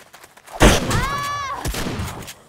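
A dog yelps sharply.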